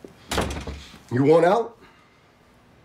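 A man speaks sharply nearby.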